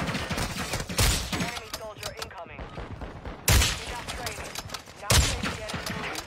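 A rifle fires loud single shots.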